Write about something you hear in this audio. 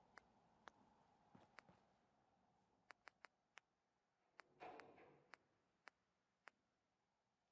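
Soft game menu clicks tick.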